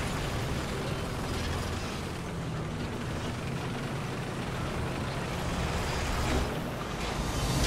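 A tank engine rumbles steadily at idle.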